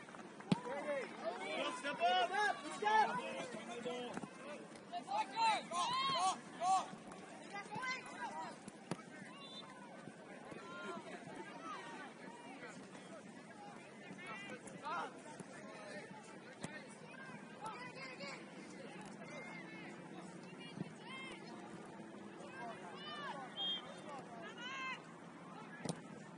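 Players and spectators shout across an open field, heard from a distance outdoors.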